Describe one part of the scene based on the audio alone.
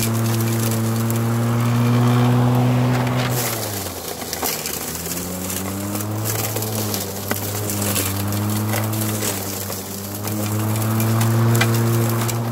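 An electric lawn mower hums steadily, its motor dipping and rising in pitch as it cuts.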